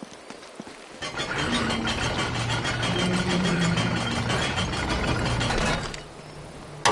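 A heavy iron gate grinds and rumbles as it rises.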